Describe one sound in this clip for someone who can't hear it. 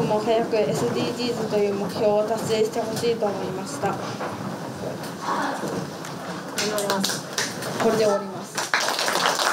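A boy speaks calmly nearby.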